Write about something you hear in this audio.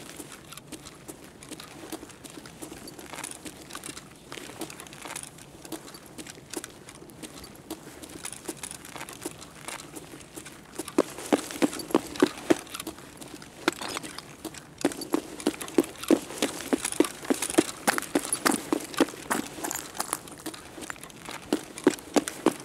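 Footsteps tread steadily over a hard floor and crunch over scattered debris.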